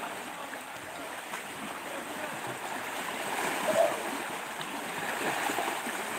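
Waves wash over rocks and splash steadily close by.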